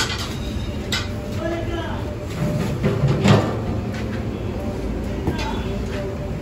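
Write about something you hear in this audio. Street noise hums steadily outdoors.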